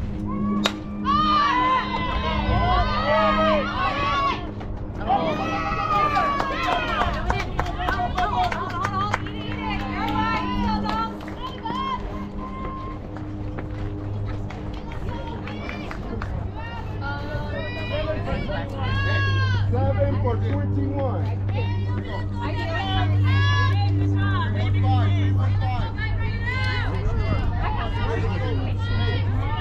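Young women shout and cheer loudly nearby, outdoors.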